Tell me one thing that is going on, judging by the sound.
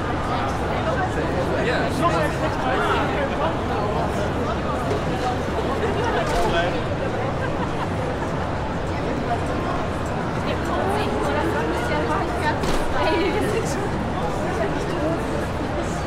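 A crowd of people chatters all around in a large echoing hall.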